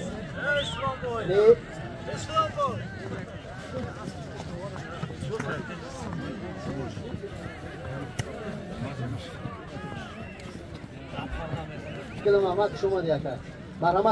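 Footsteps crunch on snow.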